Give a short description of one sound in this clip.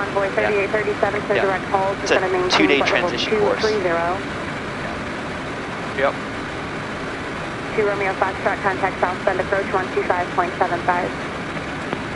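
A young man speaks calmly over a headset intercom.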